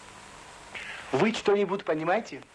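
A man speaks briefly up close.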